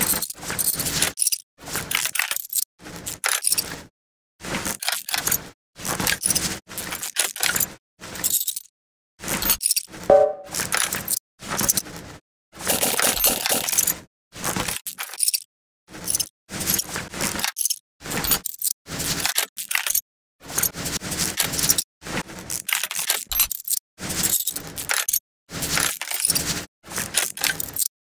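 A ratchet wrench clicks as it unscrews bolts in short bursts.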